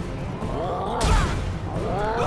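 A heavy punch lands with a loud thud.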